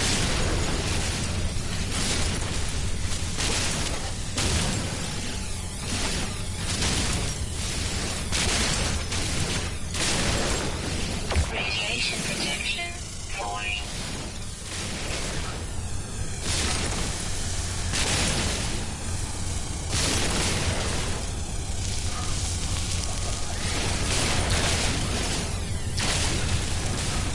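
A mining laser buzzes and crackles in bursts as it cuts into rock.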